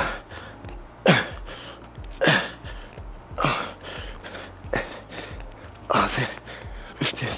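A man exhales sharply with each lift.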